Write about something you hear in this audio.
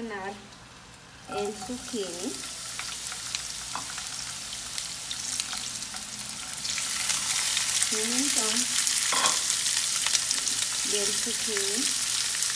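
Vegetables tumble from a bowl into a hot pan.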